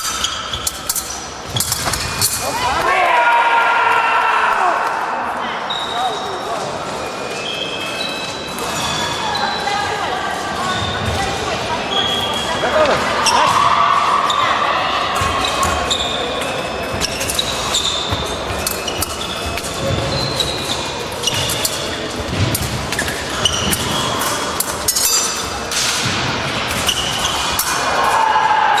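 Fencing shoes stamp and squeak on a wooden floor in a large echoing hall.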